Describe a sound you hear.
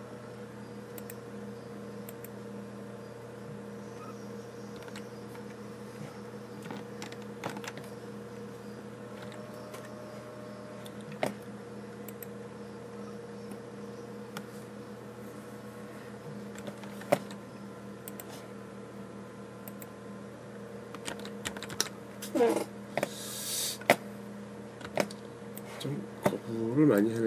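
A computer mouse clicks now and then.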